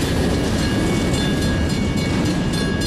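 Train wheels squeal and screech on the rails.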